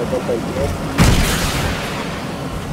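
A loud crash bursts out as the vehicle stops.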